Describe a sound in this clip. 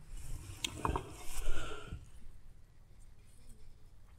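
Salt patters onto fish.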